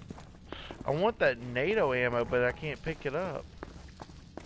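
A man talks with animation into a nearby microphone.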